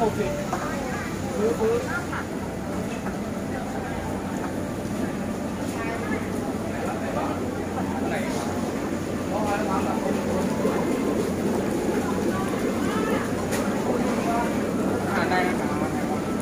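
Water bubbles and splashes in aerated tanks.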